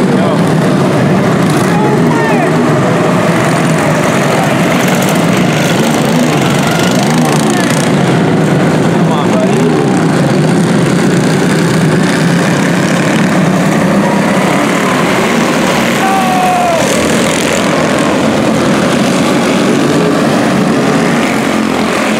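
Kart engines rise and fall in pitch as the karts speed around the track.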